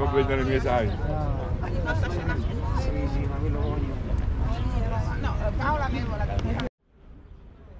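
Adults talk nearby outdoors.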